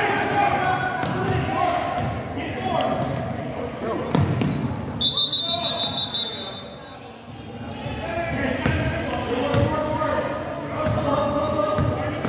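Spectators and young players call out in an echoing gym.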